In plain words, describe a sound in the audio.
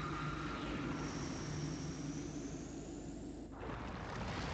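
A magic spell shimmers with a rising whoosh.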